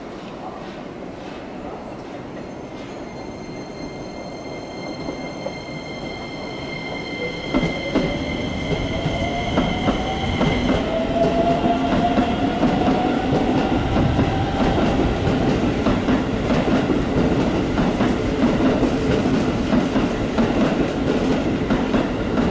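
A train's electric motor whines with a shifting pitch.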